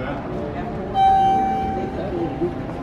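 An elevator chime rings once, clear and bright.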